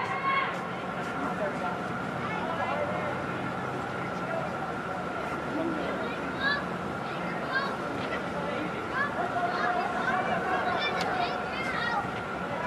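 Young men shout to each other across a large echoing hall.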